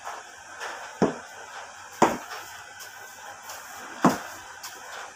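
A broom knocks against a door now and then.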